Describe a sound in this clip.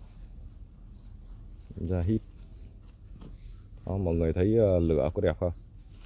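Dry leaves rustle under a dog's paws.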